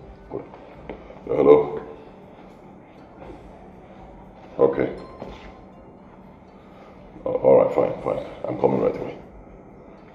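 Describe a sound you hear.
A man speaks tensely on a phone, close by.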